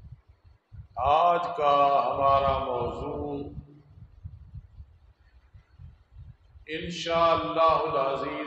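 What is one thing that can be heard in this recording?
An elderly man chants in a long, melodic voice through a microphone.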